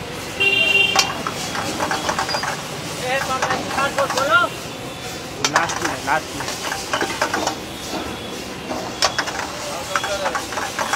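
A metal ladle scrapes and clanks against a wok.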